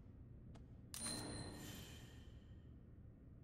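A bright game chime rings out briefly.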